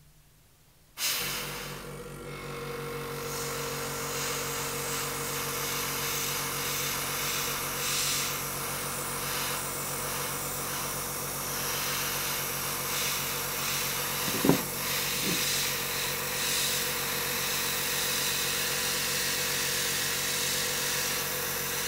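A small rotary tool whirs steadily.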